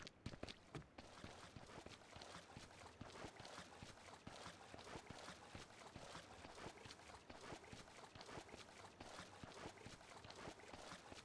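Running footsteps splash through shallow water.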